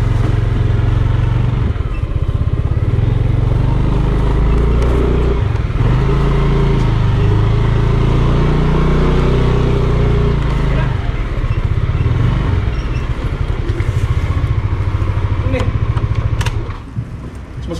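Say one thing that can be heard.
A motor scooter engine hums while riding slowly.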